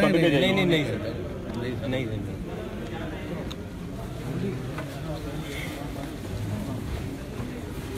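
Several men talk in the background.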